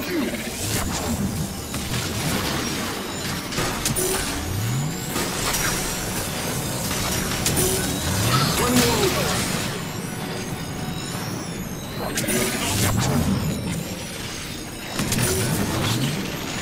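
Energy blasts crackle and hum.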